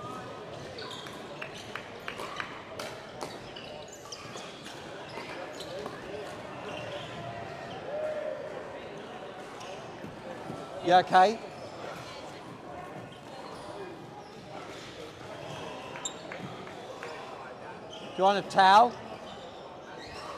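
Many people chatter in the background of a large hall.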